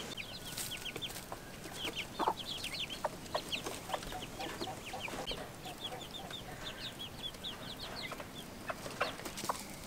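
Young chicks peep.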